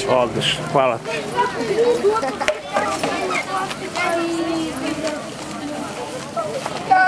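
A crowd of children chatter and call out nearby, outdoors.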